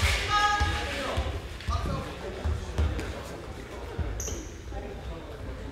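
A basketball bounces with dull thuds in a large echoing hall.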